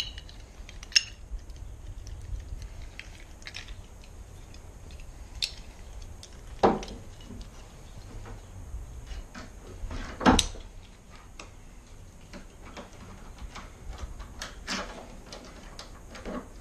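Metal hardware clicks and clanks against a wooden door.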